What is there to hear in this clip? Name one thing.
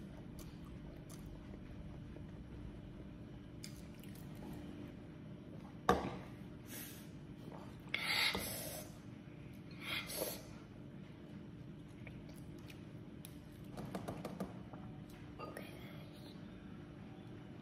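A young girl chews and smacks her lips.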